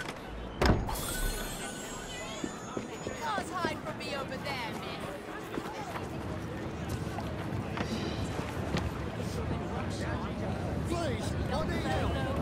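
Footsteps crunch on gravel and wooden boards.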